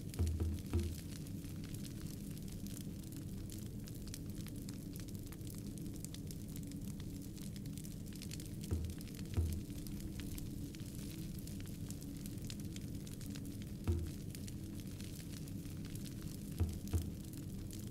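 Soft game menu sounds thump briefly each time the selection moves.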